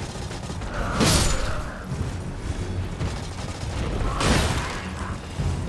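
A sword swings with a loud whoosh and strikes.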